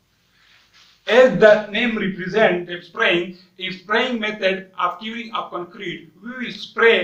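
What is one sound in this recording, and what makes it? A man speaks with animation, close to a clip-on microphone.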